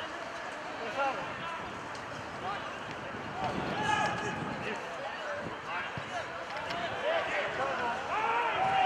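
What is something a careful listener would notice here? Young men shout to each other across an open outdoor field.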